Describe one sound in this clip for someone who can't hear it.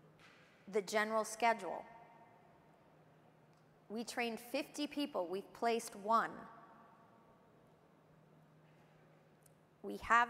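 A woman speaks calmly and deliberately through a microphone, with pauses, in a reverberant hall.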